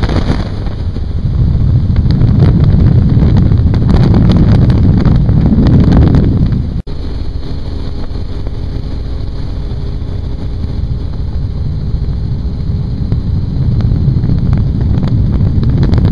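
A helicopter drones steadily with a low, rumbling roar.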